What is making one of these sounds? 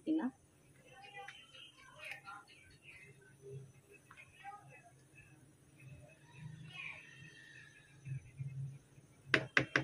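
A spoon stirs thick soup in a metal pot, scraping and clinking softly.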